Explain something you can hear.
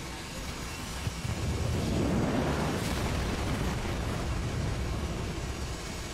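Explosions rumble and boom in a game battle.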